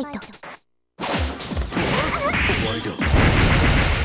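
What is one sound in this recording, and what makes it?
Blows and strikes land with loud thuds and bursts of noise in a fight.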